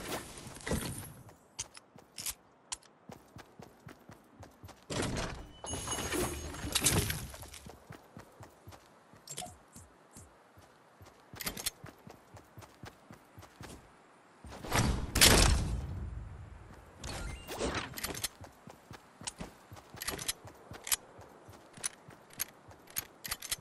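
Running footsteps patter quickly over grass and pavement.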